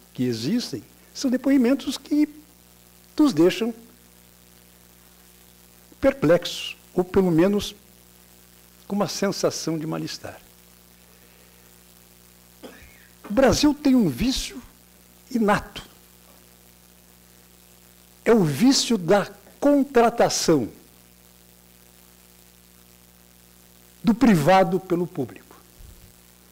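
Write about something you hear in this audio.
An elderly man speaks calmly through a microphone, in bursts with long pauses, in a large echoing room.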